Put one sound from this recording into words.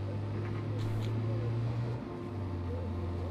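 A car engine revs up and then settles as gears shift.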